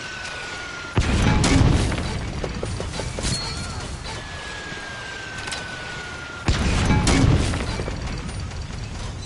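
A heavy explosion booms loudly and rumbles away.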